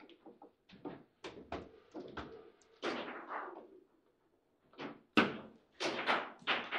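A foosball ball clacks sharply against the table's players and walls.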